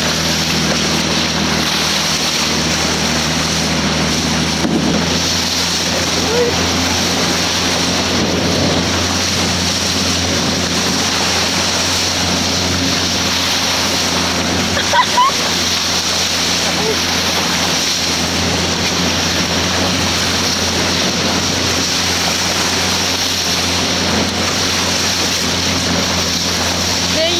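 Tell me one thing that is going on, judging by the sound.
Water rushes and splashes steadily against a moving boat's hull.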